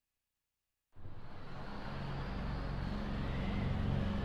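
Water laps gently.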